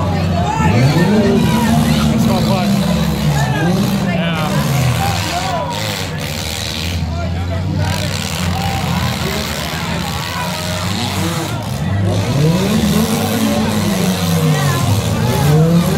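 Car engines rev and roar loudly, rising and falling.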